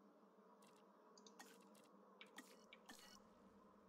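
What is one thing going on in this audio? Soft game interface clicks sound as a menu closes.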